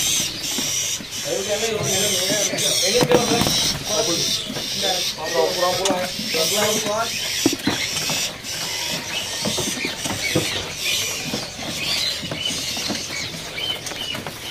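Birds chirp and twitter rapidly close by.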